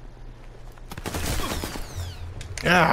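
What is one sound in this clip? A Thompson submachine gun fires a burst.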